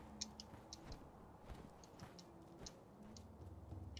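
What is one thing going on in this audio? Hands scrape and grab on a stone wall during a climb.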